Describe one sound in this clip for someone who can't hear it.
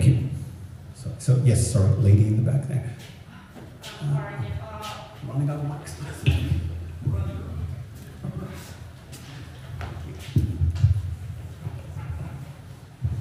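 A middle-aged man speaks with animation through a microphone and loudspeakers in an echoing hall.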